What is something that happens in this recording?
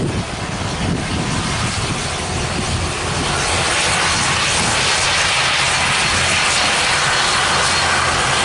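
A propeller plane's engines roar loudly as it taxis past, growing louder.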